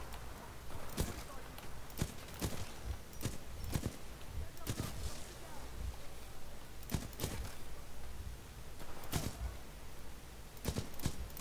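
A rifle fires single sharp shots, one after another.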